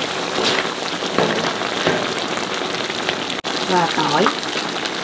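Food sizzles and bubbles steadily in a hot wok.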